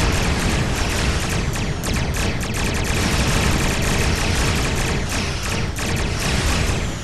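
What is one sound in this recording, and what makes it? Laser beams fire in rapid bursts.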